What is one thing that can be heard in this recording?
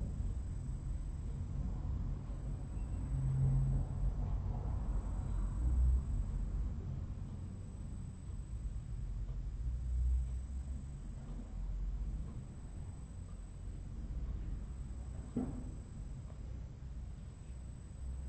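A woman snores deeply and slowly, close by.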